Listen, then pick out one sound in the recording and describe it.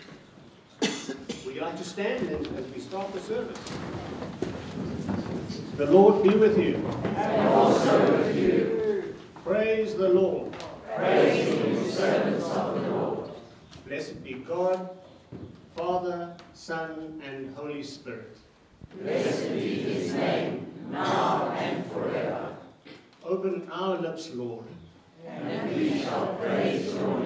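A middle-aged man sings into a microphone.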